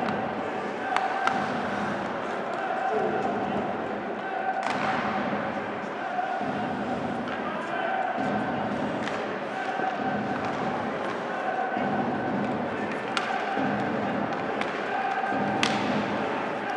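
Hockey sticks clack sharply against a puck now and then.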